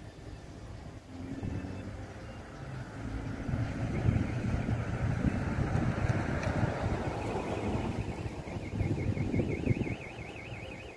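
Thunder rumbles deeply in the distance.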